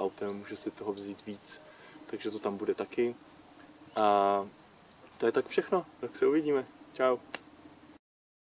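A young man talks calmly, close to a microphone.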